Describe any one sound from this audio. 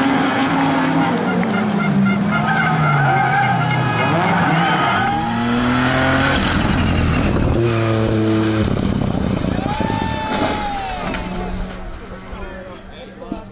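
A rally car engine revs hard and roars past.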